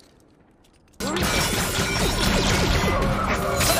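A blaster fires loud sharp bursts.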